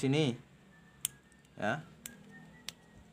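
A plastic wire connector clicks into place.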